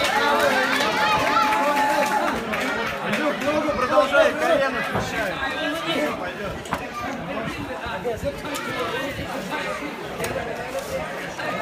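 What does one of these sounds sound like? A crowd of men and women chatters and calls out in the background.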